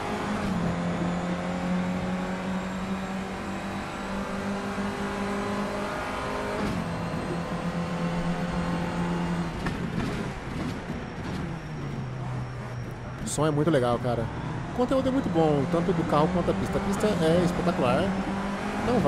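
A racing car engine drones loudly, its pitch dropping sharply at each gear change.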